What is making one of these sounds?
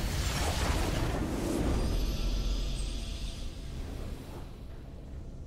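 A triumphant game victory fanfare swells loudly and then fades away.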